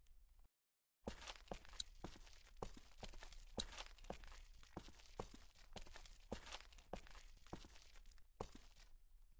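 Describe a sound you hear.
Footsteps walk along a pavement.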